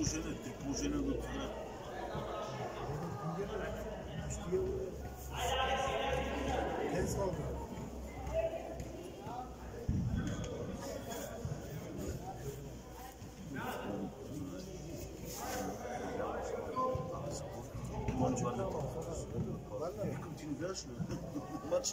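Children shout and call out to each other across a large echoing hall.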